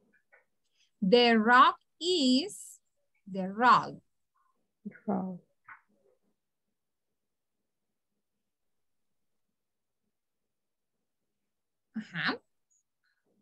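A young woman speaks clearly over an online call, in short phrases with pauses.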